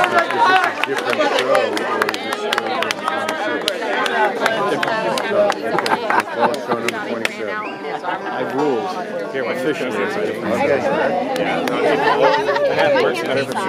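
A crowd of young men and women chatters and sings together loudly outdoors.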